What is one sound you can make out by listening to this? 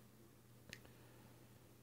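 A fork clinks once against a metal bowl.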